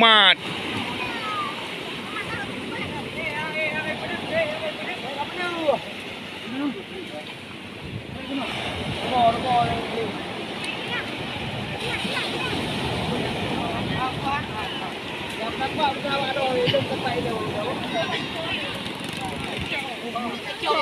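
Several men talk and call out to each other outdoors.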